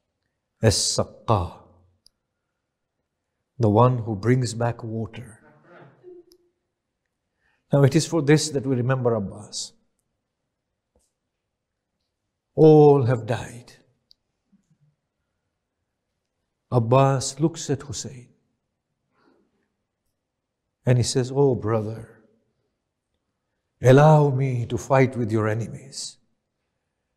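A middle-aged man speaks calmly and earnestly into a close microphone, in short phrases with pauses.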